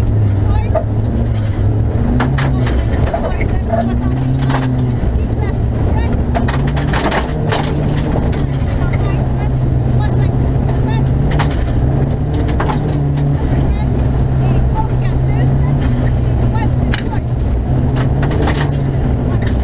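A rally car engine roars loudly, revving up and down.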